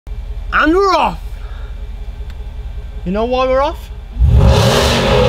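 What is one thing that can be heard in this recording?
A car engine rumbles low.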